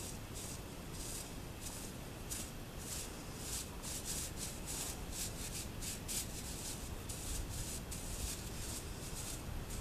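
A brush sweeps in quick, scratchy strokes.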